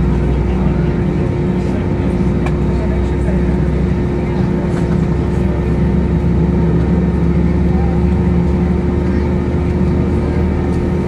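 Wheels rumble over the runway as the aircraft rolls.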